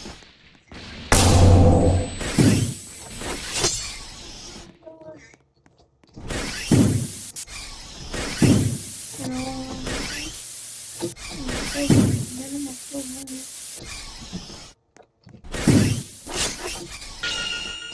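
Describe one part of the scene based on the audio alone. Blades slash through flesh with sharp swishes.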